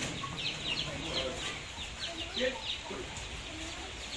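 A cow's hooves clop and scuff on a hard floor.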